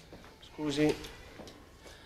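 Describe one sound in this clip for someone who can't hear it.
A mop swishes and scrapes across a floor.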